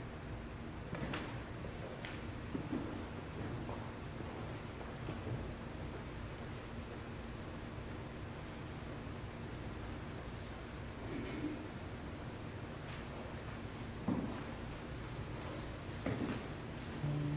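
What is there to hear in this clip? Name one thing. Dishes clink softly on a table.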